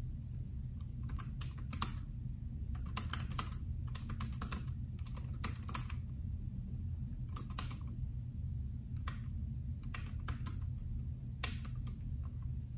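Keys click as someone types on a keyboard.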